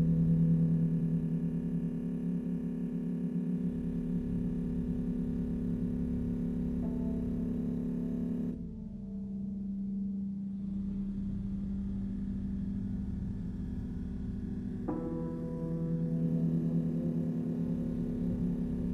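Electronic music with a low droning synthesizer plays through loudspeakers.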